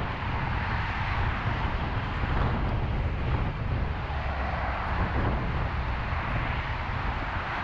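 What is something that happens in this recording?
Traffic roars steadily past on a busy highway.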